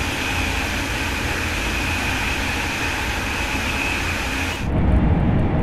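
A high-speed electric train rushes along the rails at speed, heard from outside.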